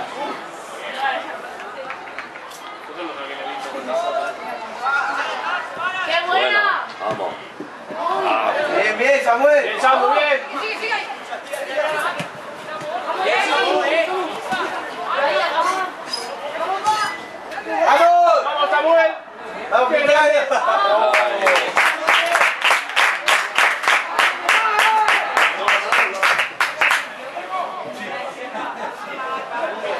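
Young men shout to each other across an outdoor football pitch.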